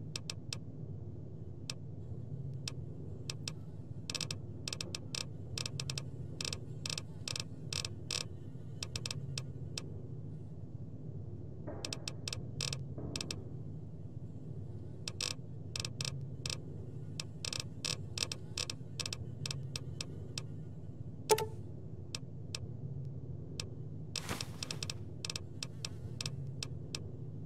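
Soft menu clicks tick in quick bursts as a list scrolls.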